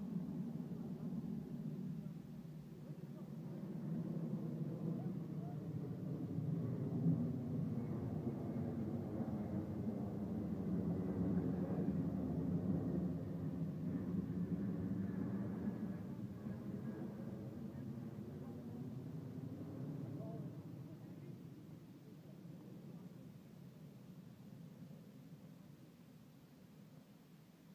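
A four-engine jet transport plane roars low overhead and then fades into the distance.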